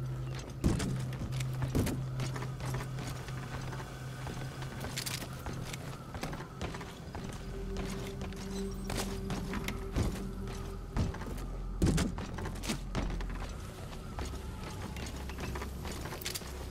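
Footsteps scuff softly on hard ground.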